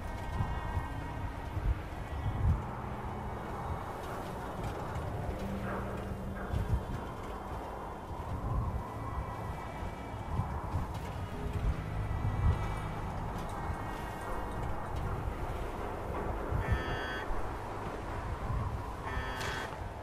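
Heavy metal footsteps thud steadily on a hard floor.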